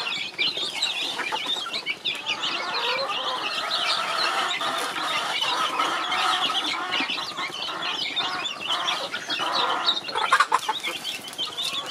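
A plastic scoop scrapes and taps against a bowl.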